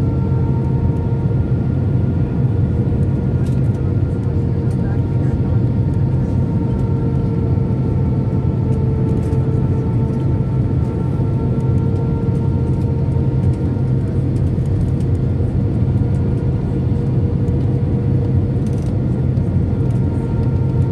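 Rushing air hisses loudly against the plane's body.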